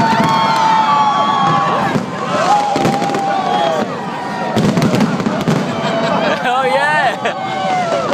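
Fireworks crackle and bang overhead.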